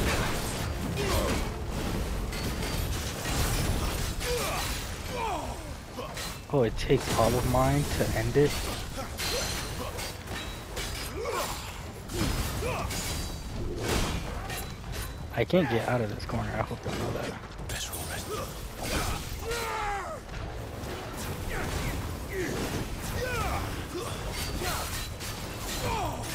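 Swords clash and strike with sharp impacts.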